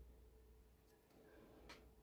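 Hands brush against a sheet of paper.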